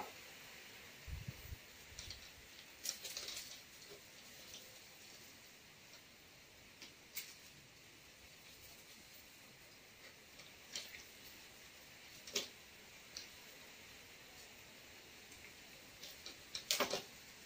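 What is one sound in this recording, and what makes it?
Dry palm leaves rustle and crackle as they are woven by hand.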